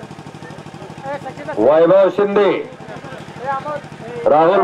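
A man announces loudly over a loudspeaker.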